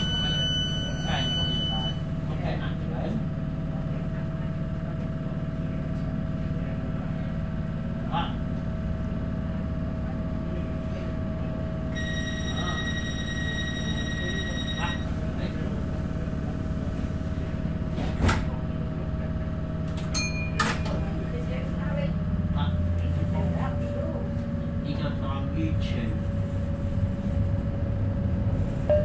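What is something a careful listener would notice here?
An electric light rail train rumbles along the track, heard from inside the carriage.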